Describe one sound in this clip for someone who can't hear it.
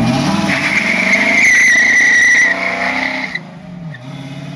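A car accelerates away and fades into the distance.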